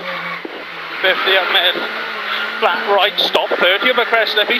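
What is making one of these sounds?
A man reads out directions loudly over an intercom.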